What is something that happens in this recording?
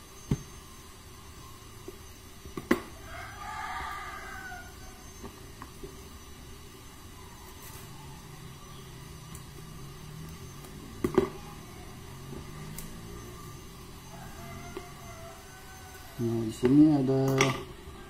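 Cardboard boxes rustle and tap as they are handled.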